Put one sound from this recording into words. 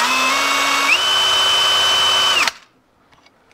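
A cordless drill whirs.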